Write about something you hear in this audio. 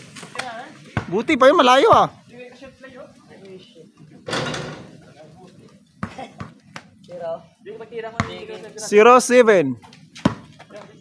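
A basketball bounces on a concrete court.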